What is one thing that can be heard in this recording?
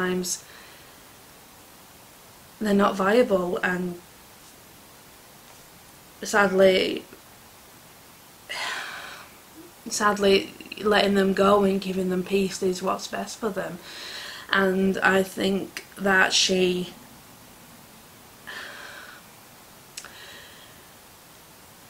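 A middle-aged woman speaks calmly and close up, in short bursts with pauses.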